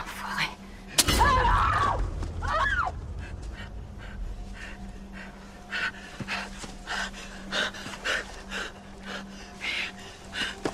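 A young woman cries out in strain.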